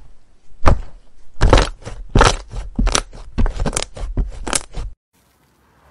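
Hands squish and stretch thick slime with wet crackling pops.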